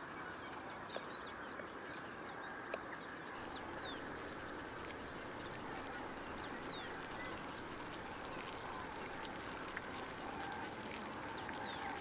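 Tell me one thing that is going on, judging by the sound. A thick stew bubbles and sizzles in a pot.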